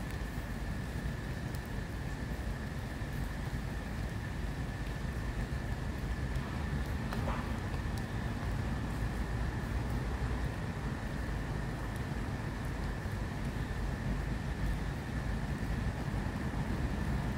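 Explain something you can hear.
Footsteps crunch softly on leaves and dirt.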